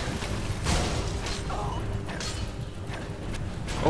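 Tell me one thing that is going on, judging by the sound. Metal blades clash and strike.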